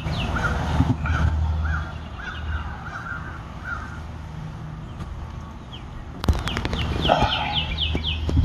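A wooden hive lid knocks and scrapes against the box.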